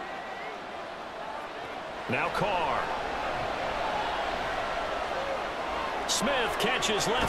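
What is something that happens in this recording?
A large stadium crowd murmurs and cheers loudly.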